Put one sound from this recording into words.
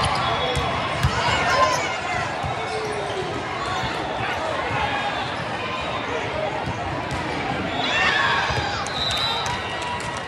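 A volleyball is struck with a thud.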